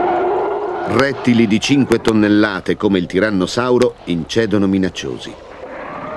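A large dinosaur roars loudly.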